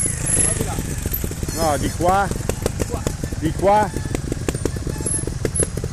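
A second motorbike engine revs as it passes close by.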